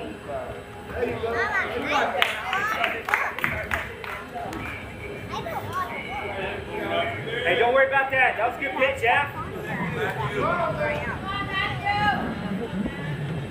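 Young women shout and cheer across an open field.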